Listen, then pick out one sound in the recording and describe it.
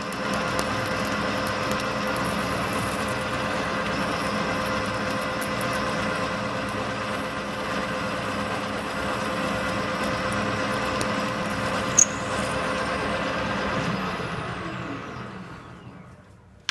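A metal lathe whirs steadily, then slowly winds down.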